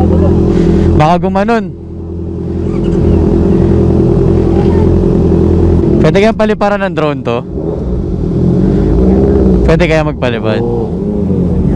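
A motorcycle engine revs sharply in short bursts.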